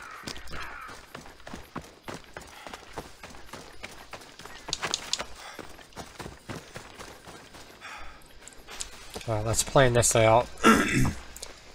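Footsteps rustle through dry grass.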